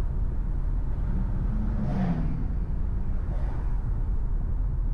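Oncoming cars pass by with a rush of tyres.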